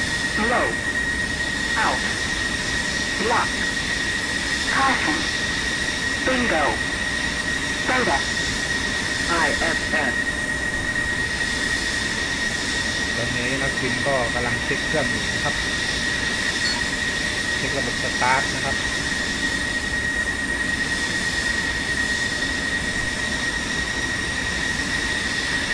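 A jet engine idles with a steady high whine.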